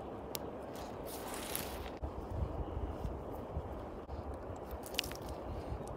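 Clothing rustles close by as a sweater is pulled on.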